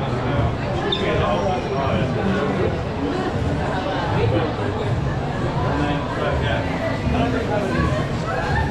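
A crowd of people chatters nearby in a busy open space.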